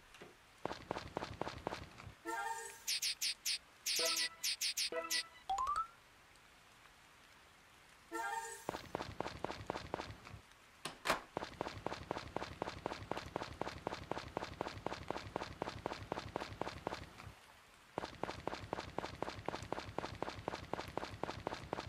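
Quick footsteps patter along steadily.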